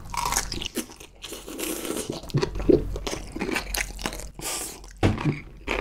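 A young man chews food with wet, squishy mouth sounds.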